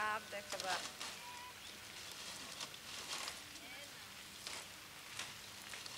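Leaves rustle and snap as hands pluck them from bushes.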